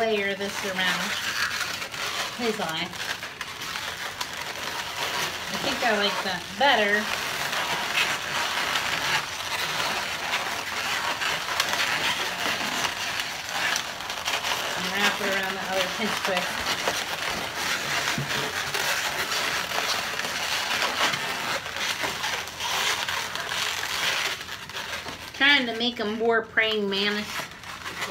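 Rubber balloons squeak and rub as they are twisted.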